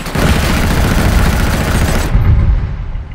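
Loud explosions and gunfire roar and rumble.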